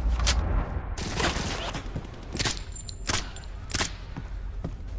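A rifle fires loud bursts of shots in an echoing hall.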